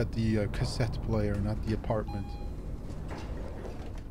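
A metal elevator gate rattles as it slides open.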